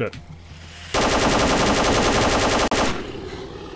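A rifle fires a rapid burst of automatic shots.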